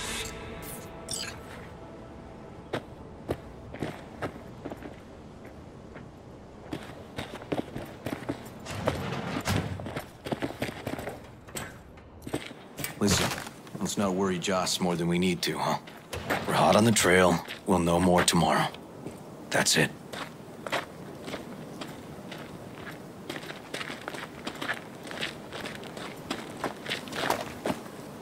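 Footsteps tread steadily on gravel.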